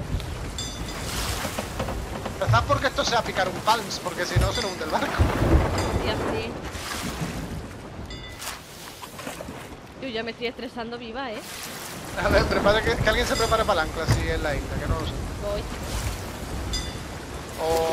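Heavy rain pours down on a wooden ship at sea.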